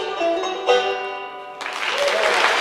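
A banjo plays a bright picked tune close by.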